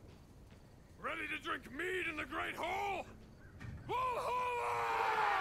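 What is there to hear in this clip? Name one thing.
A group of men shout a war cry in bursts.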